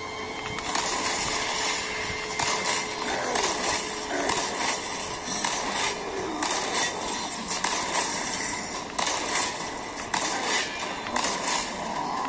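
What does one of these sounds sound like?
Gunshots from a video game fire repeatedly in loud bursts.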